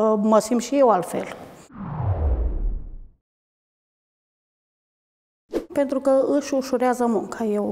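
A middle-aged woman speaks calmly and close up.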